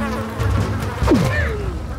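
A blade swooshes through the air with a sharp hit.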